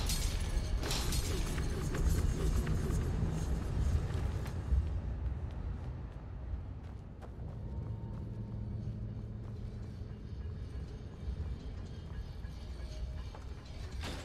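Footsteps patter on stone as a figure runs.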